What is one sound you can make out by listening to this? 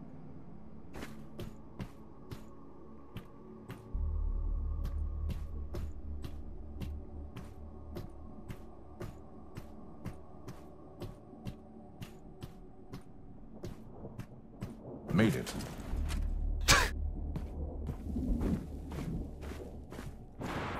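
Wooden rungs knock and creak as hands grab them while climbing.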